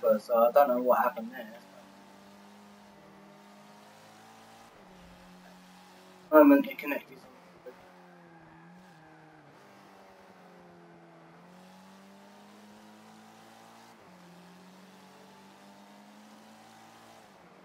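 A car engine hums steadily and rises and falls in pitch as the car races.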